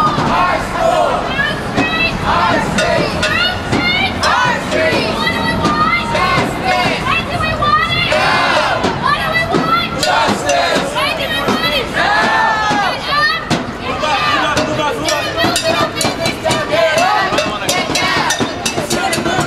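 A crowd of men and women chants loudly together outdoors.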